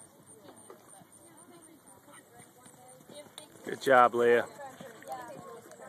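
A horse canters on soft sand, hooves thudding close by.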